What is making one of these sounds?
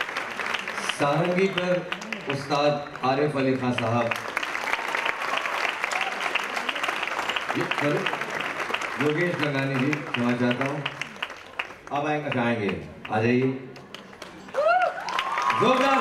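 A man speaks through a microphone over loudspeakers, echoing in a large hall.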